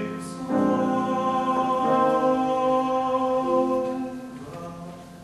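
A man sings a held note in an echoing hall.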